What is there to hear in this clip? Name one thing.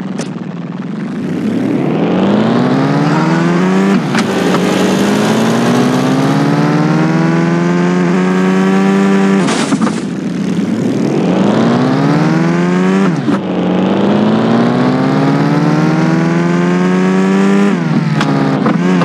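A simulated car engine revs up and shifts through gears.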